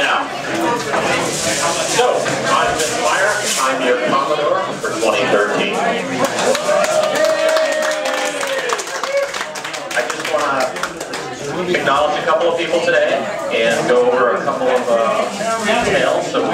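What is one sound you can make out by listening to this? A man speaks through a handheld microphone and loudspeaker.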